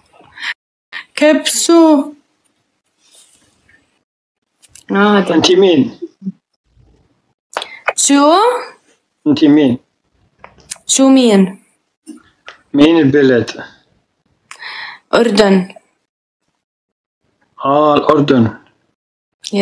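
A young woman speaks in short bursts over an online call.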